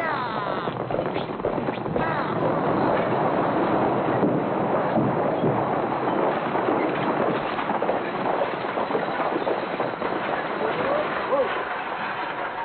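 Wooden wagon wheels rumble and creak as a stagecoach rolls by.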